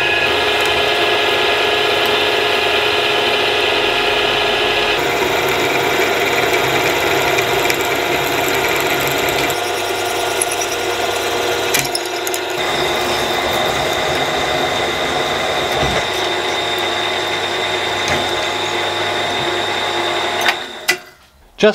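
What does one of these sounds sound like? A drill press whirs steadily as its bit bores into metal.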